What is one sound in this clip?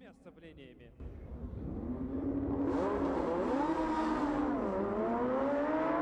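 Sports car engines idle and rev nearby, outdoors.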